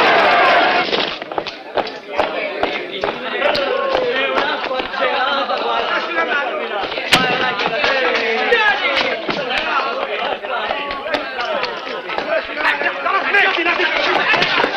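Young men shout and laugh with animation in an echoing room.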